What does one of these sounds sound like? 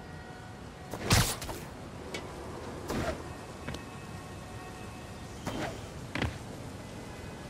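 Heavy thumps and whooshes sound in quick bursts.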